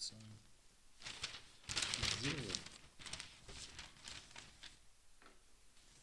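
A newspaper rustles loudly as its pages are turned.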